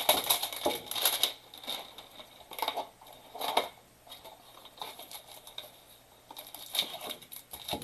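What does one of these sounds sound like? Cardboard packaging rustles and scrapes as it is handled.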